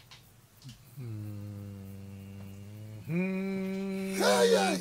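A man sings long, steady notes.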